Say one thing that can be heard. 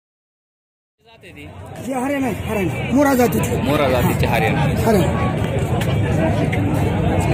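Men talk loudly nearby amid a busy outdoor crowd.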